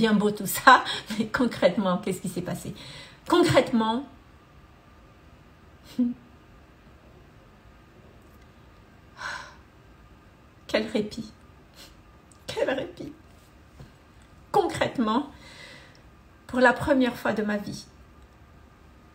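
A woman speaks calmly and warmly close to a microphone, with pauses.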